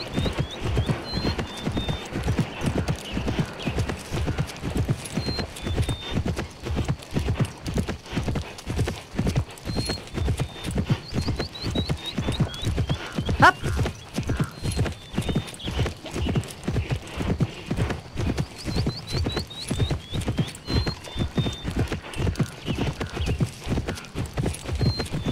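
A horse gallops with quick, steady hoofbeats.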